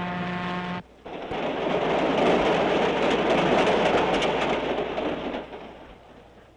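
A train rushes past with a loud roar.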